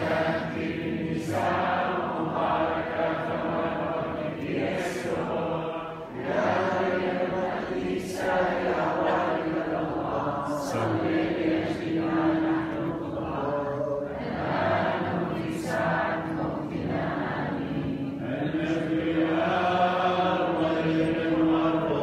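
A large congregation sings together in a big echoing hall.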